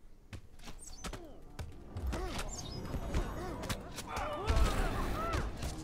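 Blows thud and clash in a fight.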